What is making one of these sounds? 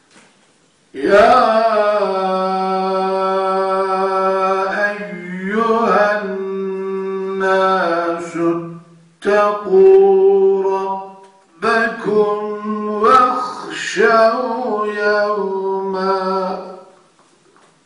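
An elderly man chants loudly through a microphone in long, drawn-out melodic phrases.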